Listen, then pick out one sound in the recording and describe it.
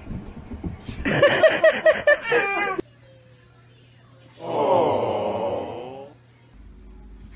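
A young child giggles close by.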